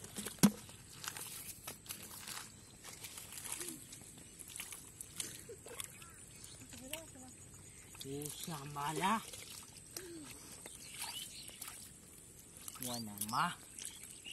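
Hands squelch and slosh in wet mud.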